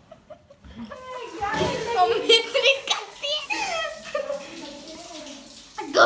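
A boy laughs loudly close by.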